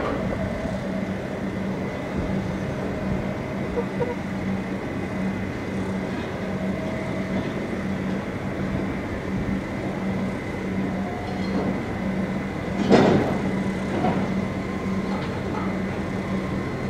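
A truck engine idles steadily.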